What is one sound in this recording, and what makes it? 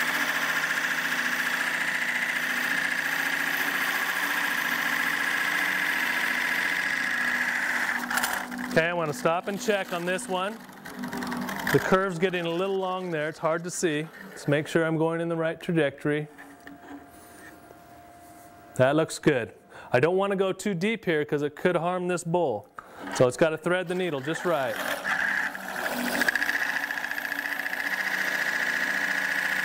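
A lathe tool scrapes against spinning wood with a steady, hissing whir.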